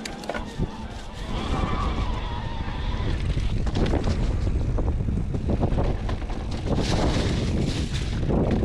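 An electric mountain bike's frame rattles and knocks over rough ground.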